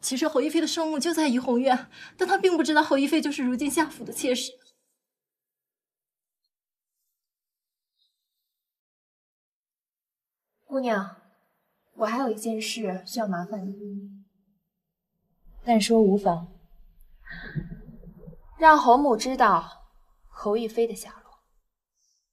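A young woman speaks earnestly, close by.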